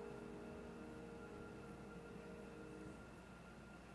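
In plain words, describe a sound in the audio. A piano plays soft held notes in a large room.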